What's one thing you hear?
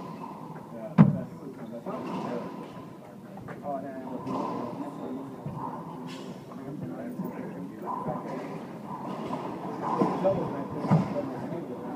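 A racquetball smacks sharply off a wall in an echoing court.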